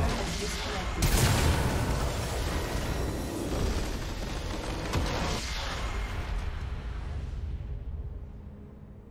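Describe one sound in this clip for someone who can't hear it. A deep rumble rolls on and slowly fades away.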